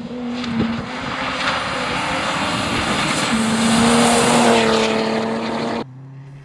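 Tyres hiss and crunch on a wet, gravelly road.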